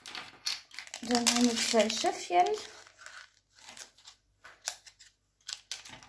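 Plastic trays clack softly as they are handled.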